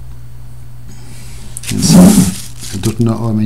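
Plastic bubble wrap crinkles briefly.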